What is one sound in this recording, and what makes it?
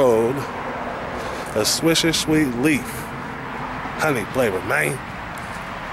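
A man speaks casually, close to the microphone.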